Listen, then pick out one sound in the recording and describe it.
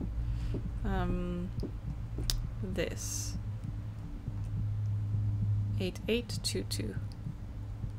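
A young woman speaks softly and briefly into a microphone, close by.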